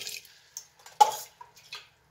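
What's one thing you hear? A metal kettle clinks as it is set down.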